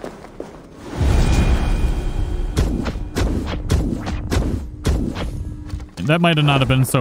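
Arrows whoosh and hit their target.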